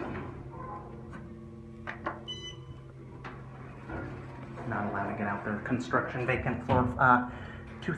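A finger clicks an elevator button.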